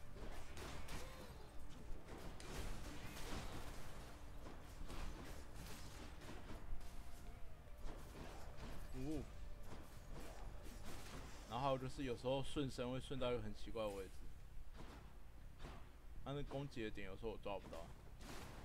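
Blades swish and strike in quick bursts of fighting.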